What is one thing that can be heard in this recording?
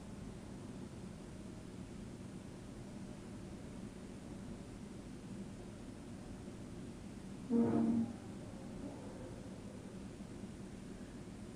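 A hand squelches and squishes through soft dough.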